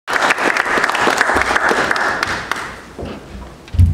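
An audience applauds in an echoing hall, then the clapping fades out.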